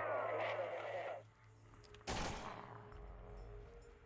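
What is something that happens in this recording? A pistol fires a loud gunshot.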